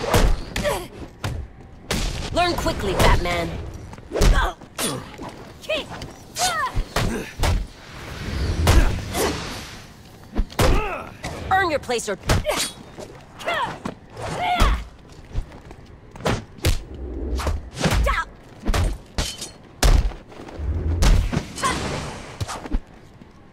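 Men grunt and cry out in pain.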